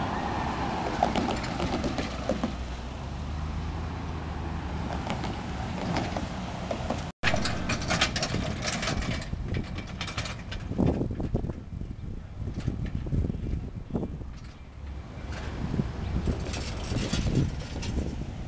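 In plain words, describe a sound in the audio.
A diesel locomotive rumbles as it approaches slowly.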